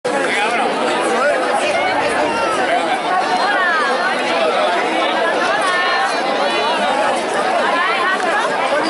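A group of men sing together loudly outdoors.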